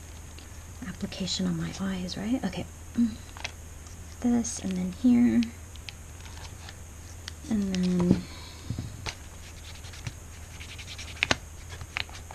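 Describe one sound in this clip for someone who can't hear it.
Small objects tap and knock on a tabletop.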